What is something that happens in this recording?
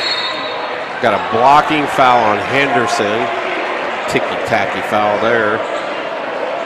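A crowd of spectators cheers and shouts loudly.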